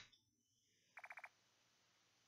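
Quick electronic beeps tick in a short rapid run.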